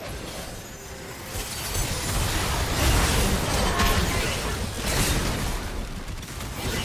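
Game spell blasts and magic bursts crackle and boom in a fast fight.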